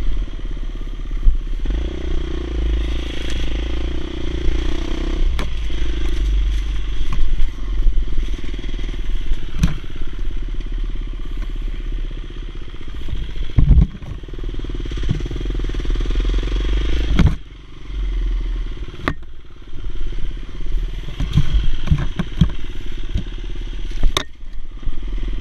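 Tyres thump and rattle over a bumpy dirt trail.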